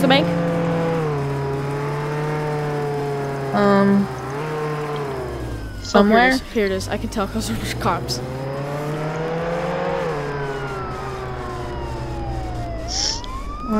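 A car engine hums and revs up and down.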